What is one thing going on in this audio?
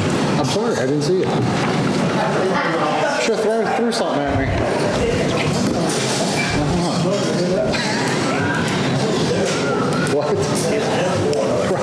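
People in a crowd murmur and talk in a large room.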